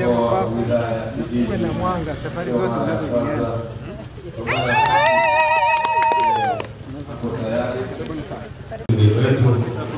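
A crowd of men and women talk and chatter nearby.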